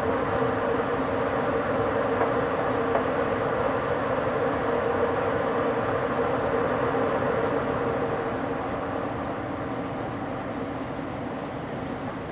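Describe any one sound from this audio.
Wind rushes past a moving train.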